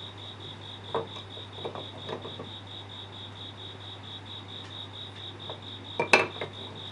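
A wooden tool knocks against wood.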